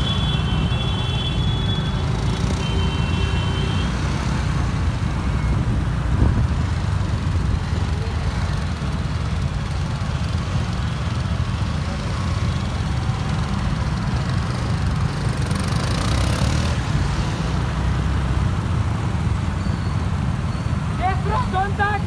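Many motorcycles and scooters ride together in a convoy.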